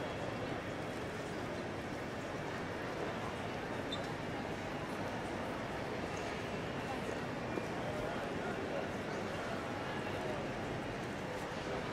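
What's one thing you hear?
A crowd murmurs faintly in a large echoing hall.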